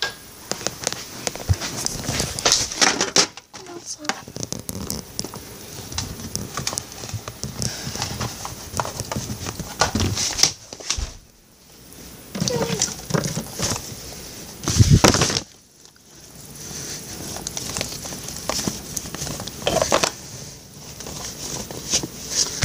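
A boy talks close to the microphone.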